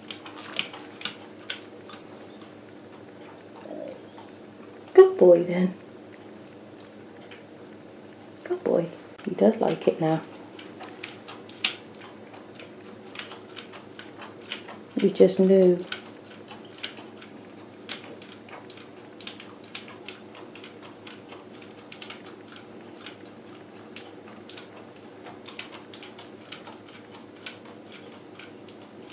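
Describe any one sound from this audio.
A small dog licks and laps at a plastic mat with quick wet clicks.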